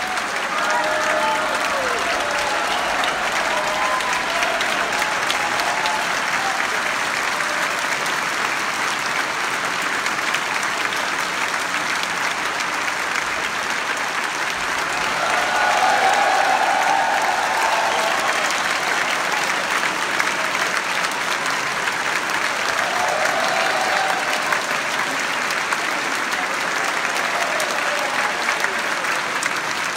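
A large audience applauds in a large concert hall.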